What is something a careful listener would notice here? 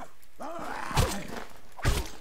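A blunt weapon strikes with heavy thuds.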